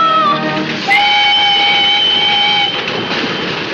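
A train whistle blows loudly.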